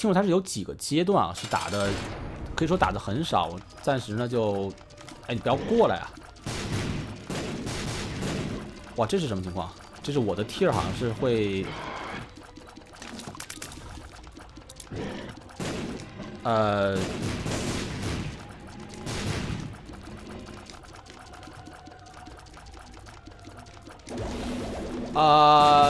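Video game shots fire in quick bursts.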